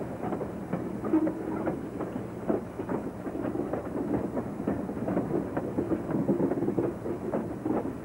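Metal wheels squeal on the curved track.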